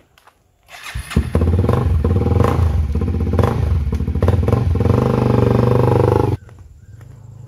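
A motorcycle engine starts and idles loudly nearby.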